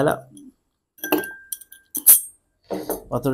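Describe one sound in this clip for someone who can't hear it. Ice clinks into a glass.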